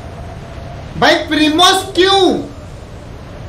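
A young man speaks loudly and with excitement into a close microphone.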